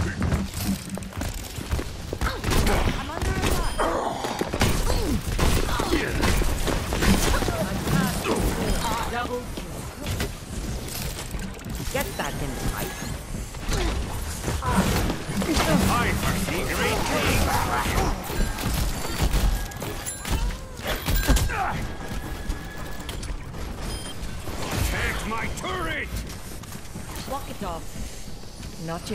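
Heavy weapons fire in rapid bursts.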